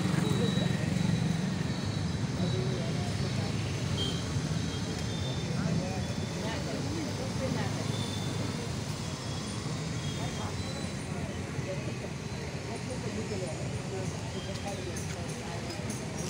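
A crowd of men and women murmurs and chatters in the distance.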